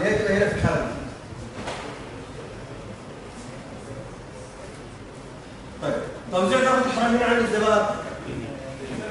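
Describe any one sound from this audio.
A man speaks calmly, explaining.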